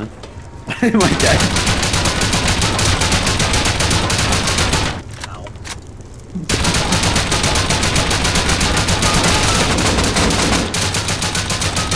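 An automatic rifle fires long, rapid bursts of shots.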